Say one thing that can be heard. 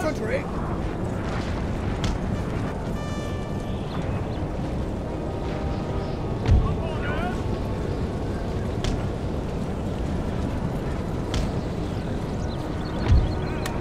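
Muskets fire in rolling volleys, with distant booming thuds.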